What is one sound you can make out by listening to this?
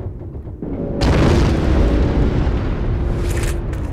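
An engine rumbles close by.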